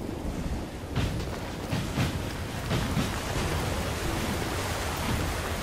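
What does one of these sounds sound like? Heavy armoured footsteps thud quickly on wet ground.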